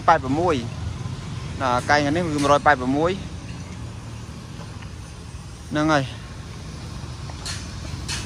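Motorbikes and cars hum along a street nearby.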